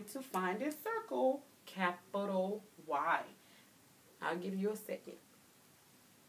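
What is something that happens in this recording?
A woman speaks clearly and with animation, close by.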